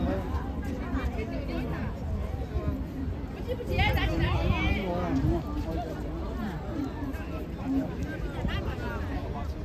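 Several adults talk nearby outdoors in a crowd.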